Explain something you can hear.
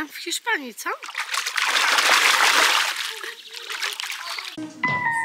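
Water splashes in a small paddling pool.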